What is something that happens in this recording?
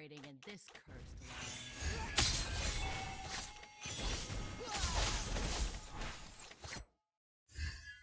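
Game weapons clash and spells burst in a fast, noisy battle.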